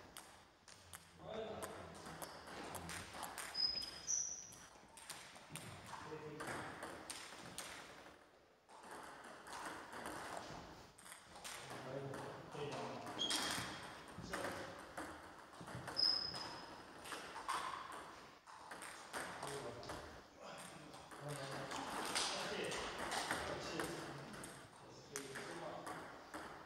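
Ping-pong balls click sharply on tables and paddles.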